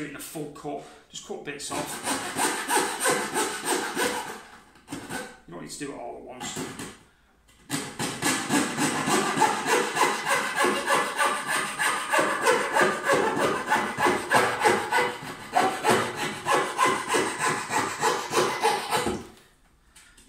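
A coping saw cuts through wood with quick back-and-forth strokes.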